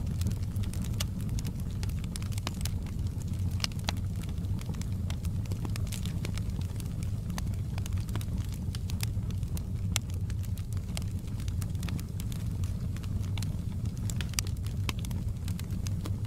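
Flames roar with a low steady rumble.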